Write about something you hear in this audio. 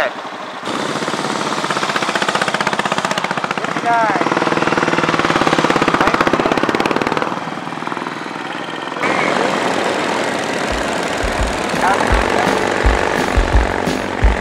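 Motorcycle engines rumble and putter nearby.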